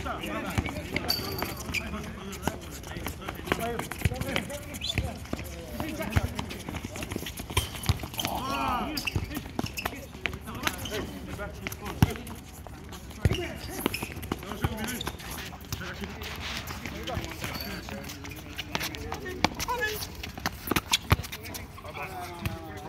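Men shout and call out to each other during play, outdoors.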